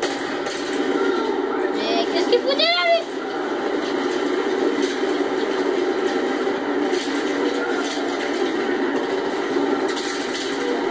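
Gunfire rattles from a video game, heard through a small speaker.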